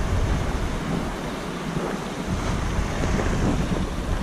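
A paddle dips and splashes in calm water.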